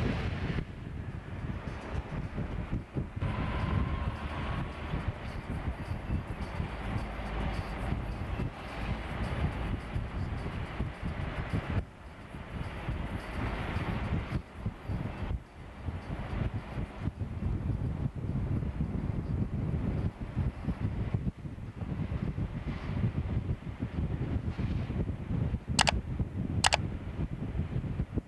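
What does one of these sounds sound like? Wind rushes past an open car window.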